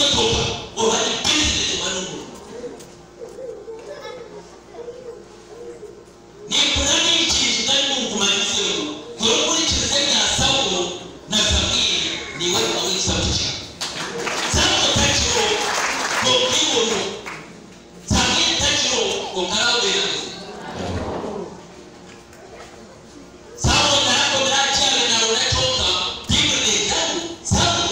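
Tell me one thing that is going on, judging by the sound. A man preaches loudly through a loudspeaker in a large echoing hall.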